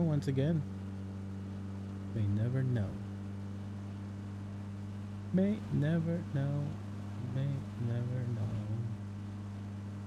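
A man talks into a close microphone in short bursts.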